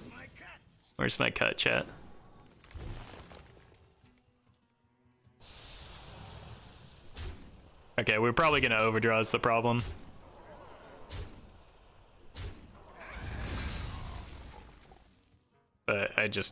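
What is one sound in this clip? Game effects whoosh and chime.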